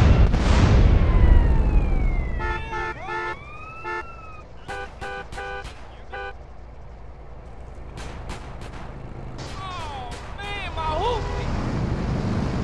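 A police siren wails in short, rising and falling bursts.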